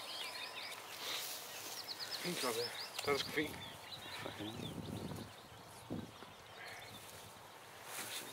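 Grass rustles as a man handles a deer.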